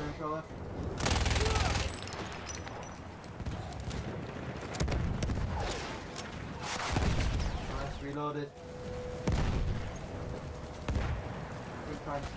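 Explosions boom nearby, several times.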